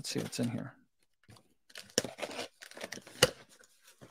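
A blade slices through packing tape.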